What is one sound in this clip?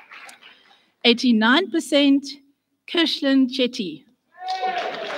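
An elderly woman speaks through a microphone in a large echoing hall.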